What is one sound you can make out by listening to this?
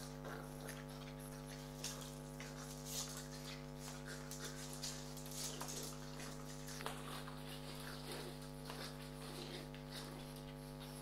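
Small dogs growl and grunt as they tussle close by.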